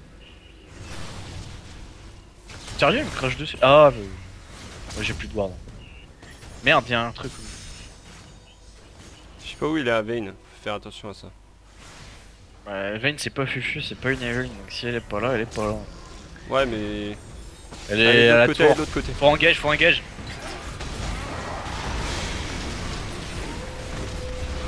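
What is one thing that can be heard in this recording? Magic blasts and zaps crackle in a video game battle.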